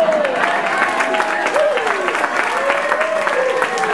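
An elderly man laughs loudly into a microphone.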